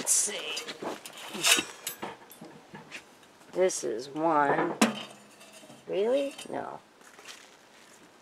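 Metal stovepipe sections clank and scrape together.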